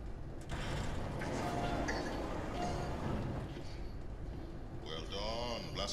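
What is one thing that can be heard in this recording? A man speaks through a window, muffled.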